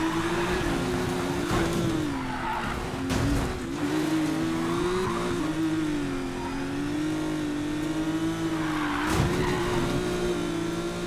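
Tyres screech as a car drifts around bends.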